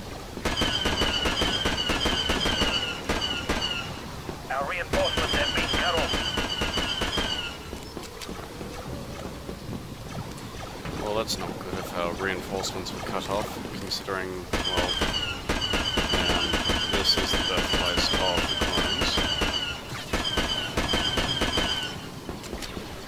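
A laser rifle fires rapid bursts of bright zapping shots.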